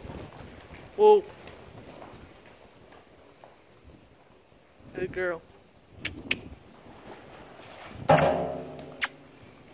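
Horses snort and whinny.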